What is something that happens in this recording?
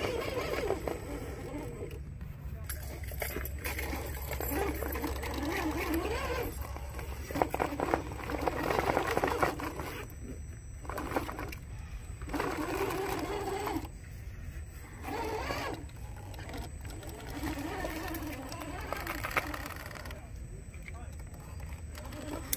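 A small electric motor whirs as a toy truck crawls up rock.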